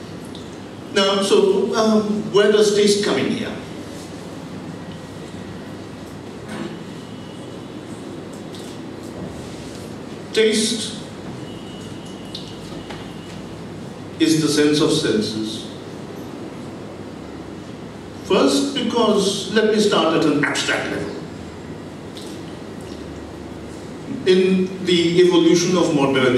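A middle-aged man speaks into a microphone in bursts with long pauses, heard through loudspeakers in a large room.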